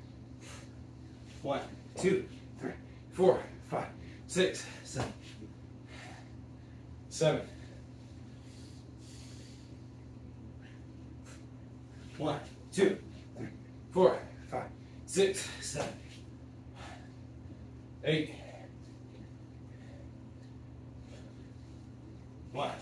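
Hands and feet thump on a rubber floor.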